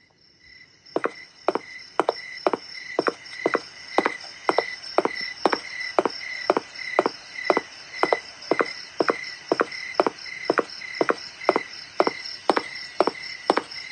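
Footsteps thud at a steady walking pace.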